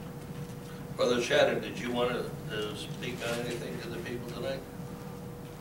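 An elderly man speaks calmly in a room with a slight echo.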